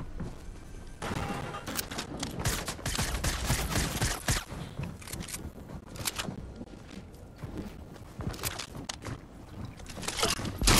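Sharp gunshots crack in quick bursts.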